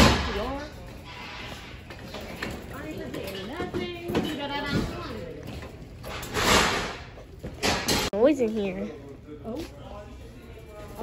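A shopping cart rattles as it rolls along a hard floor.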